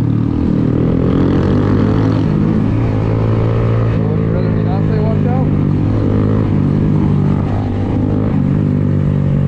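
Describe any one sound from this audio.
A motorcycle engine hums steadily close by as it rides along.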